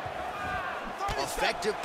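Punches thud against a fighter.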